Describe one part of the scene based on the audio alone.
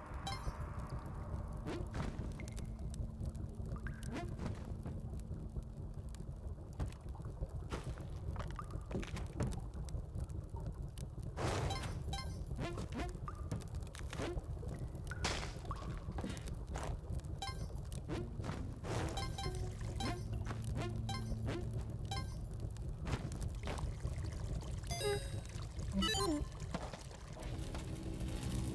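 Short chiming clinks sound again and again as coins are picked up in a video game.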